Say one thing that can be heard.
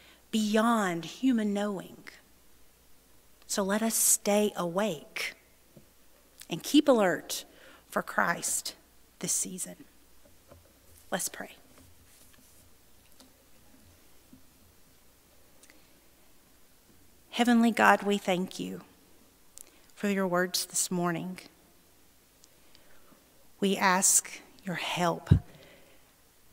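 A woman speaks calmly into a microphone, with pauses, in a slightly echoing room.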